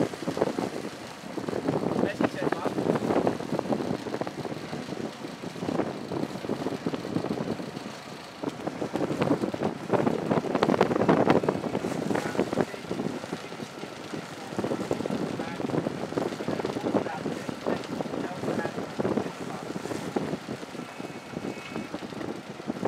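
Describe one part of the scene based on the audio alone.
Small waves lap and splash on the water.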